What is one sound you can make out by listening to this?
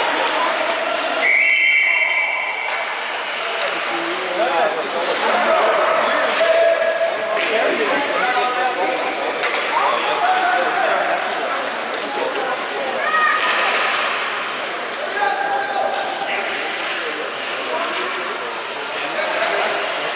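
Skate blades scrape and hiss on ice.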